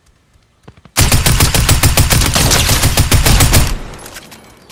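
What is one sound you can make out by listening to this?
A rapid burst of gunfire rattles loudly.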